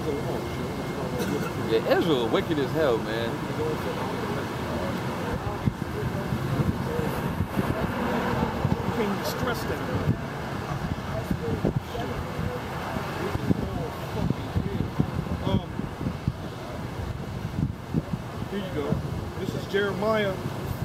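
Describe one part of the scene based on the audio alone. A man reads aloud outdoors.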